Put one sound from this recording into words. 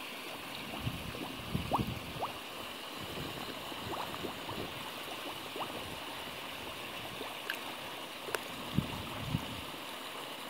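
Fish splash and slurp at the surface of the water.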